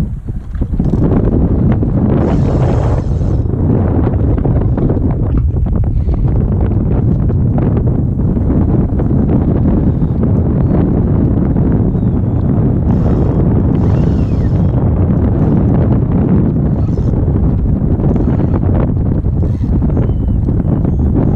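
Wind buffets the microphone steadily outdoors.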